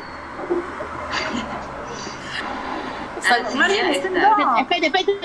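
Several women talk over an online call.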